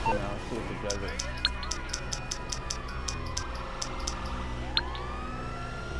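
A mobile phone clicks and beeps as its menu is scrolled.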